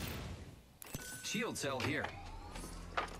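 A short electronic chime sounds as an item is picked up.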